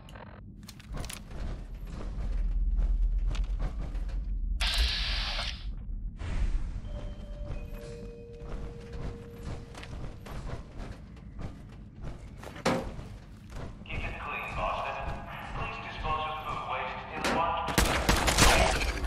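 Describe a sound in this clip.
Heavy metal footsteps clank and thud on a hard floor.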